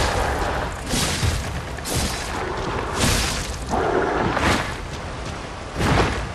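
A sword slashes through the air with sharp swooshes.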